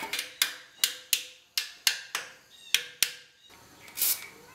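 Metal tools clink sharply against an engine.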